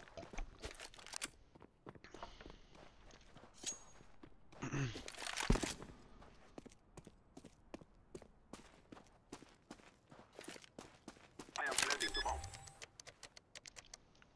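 Footsteps tap quickly and steadily on hard ground.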